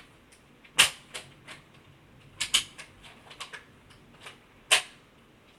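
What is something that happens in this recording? Short punchy game sound effects of blocks being struck repeat at an uneven pace.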